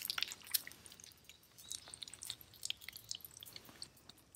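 Foil crinkles as it is laid over a pan.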